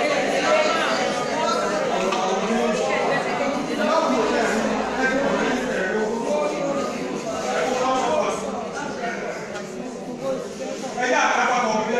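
Women in a crowd chatter and call out in an echoing room.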